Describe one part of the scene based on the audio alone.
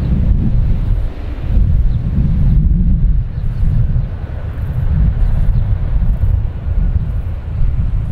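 A large propeller plane's engines roar loudly as it rolls along a runway.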